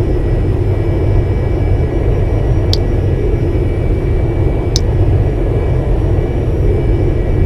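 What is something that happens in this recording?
An aircraft engine drones steadily with a low rumble.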